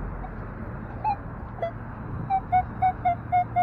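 A metal detector beeps in short repeated tones.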